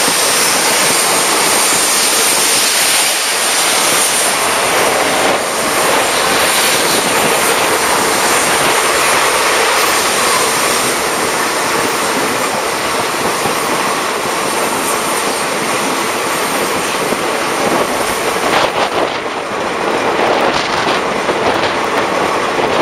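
Train carriages rumble and clatter steadily along the tracks.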